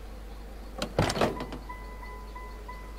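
A car door clicks open and creaks.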